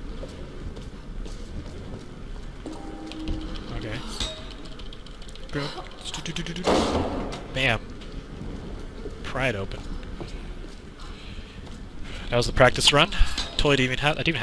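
A torch flame crackles and flutters.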